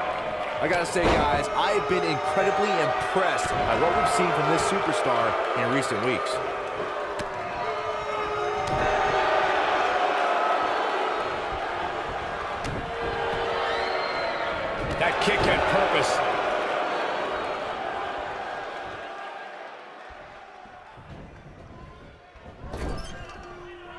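Heavy bodies thud and slam onto a wrestling mat.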